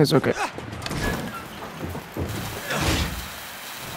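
A torch hisses and crackles while cutting metal.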